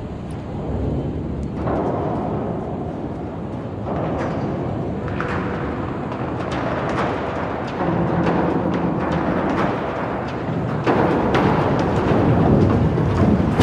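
A huge steel hull creaks and groans as it slowly tilts.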